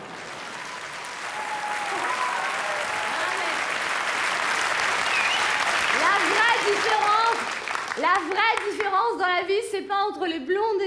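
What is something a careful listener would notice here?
A woman sings with strong feeling.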